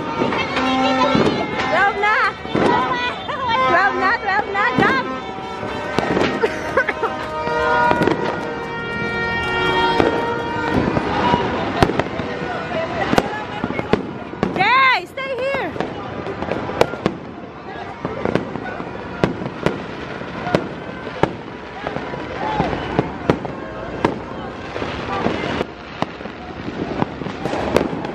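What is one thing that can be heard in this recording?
Fireworks bang and crackle repeatedly outdoors.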